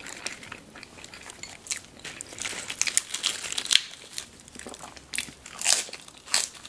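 Lettuce leaves rustle and crinkle close up.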